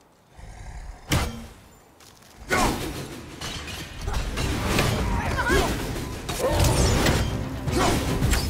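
An axe swooshes through the air.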